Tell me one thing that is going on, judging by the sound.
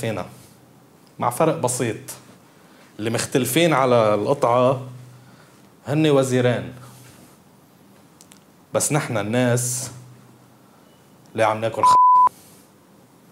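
A man speaks expressively in short bursts, close to a microphone.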